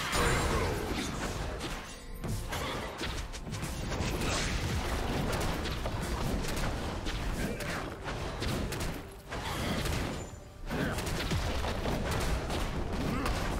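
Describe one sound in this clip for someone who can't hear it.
Fantasy battle sound effects crackle and burst.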